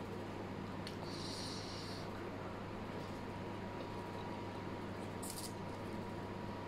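A woman slurps noodles close to a microphone.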